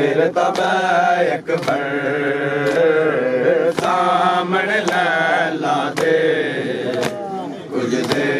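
A man chants a mournful lament loudly.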